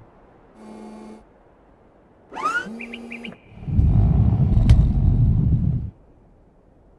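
A small forklift whirs as it lifts tyres.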